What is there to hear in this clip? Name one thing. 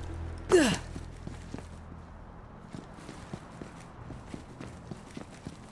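Footsteps patter lightly on stone.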